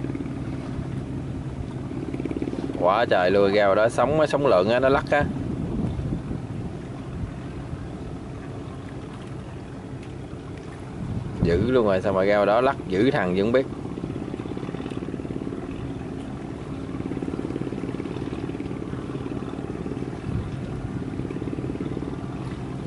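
Waves splash against a boat's hull.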